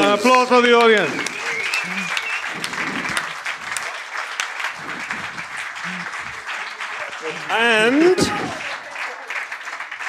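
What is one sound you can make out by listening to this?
A large crowd applauds in a room.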